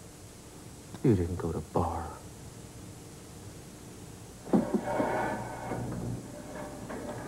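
A man speaks quietly and tensely, close by.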